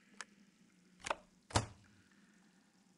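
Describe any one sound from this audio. A wooden box lid clicks and swings open.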